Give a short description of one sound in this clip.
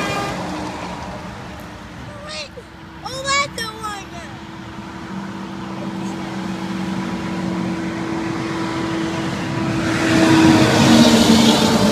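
Cars and a pickup drive past with a rushing hiss of tyres.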